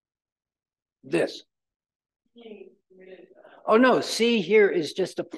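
An elderly man lectures through a microphone.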